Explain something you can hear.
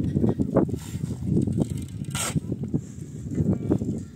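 Gravel pours into a metal wheelbarrow.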